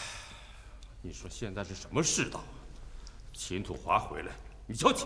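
A man speaks firmly and calmly, close by.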